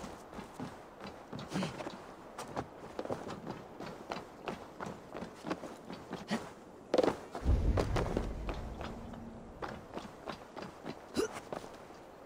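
Footsteps thud on a wooden roof.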